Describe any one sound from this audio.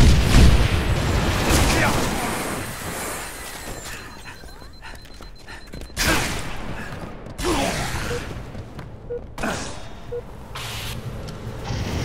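Gunfire and explosions rattle in a video game.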